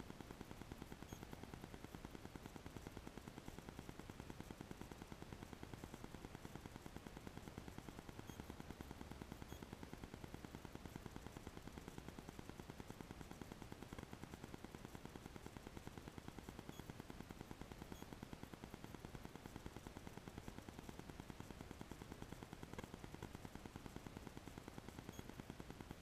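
A car engine idles with a steady low rumble, heard from inside the car.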